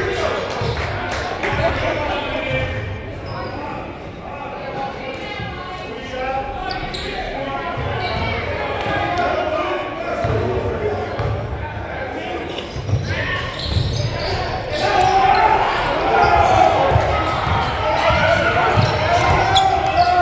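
Voices of a crowd of players and spectators chatter in a large echoing gym.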